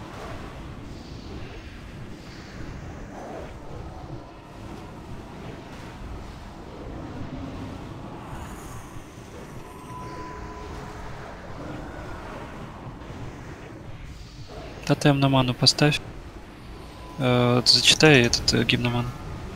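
Magic spells whoosh and crackle in a busy game battle.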